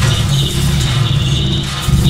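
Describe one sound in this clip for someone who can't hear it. Electricity crackles and sparks nearby.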